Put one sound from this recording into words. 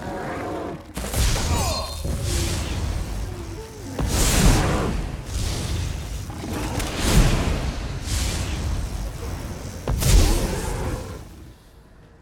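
Lightning crackles and zaps in bursts.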